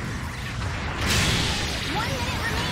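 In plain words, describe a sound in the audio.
An explosion bursts with a loud crack.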